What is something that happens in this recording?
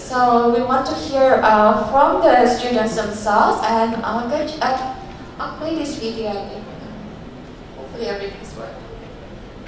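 A young woman speaks into a microphone over loudspeakers in a large echoing hall.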